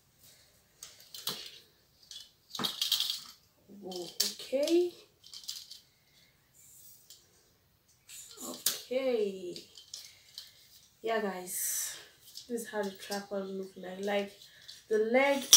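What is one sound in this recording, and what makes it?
Metal tripod legs click and rattle as they are unfolded.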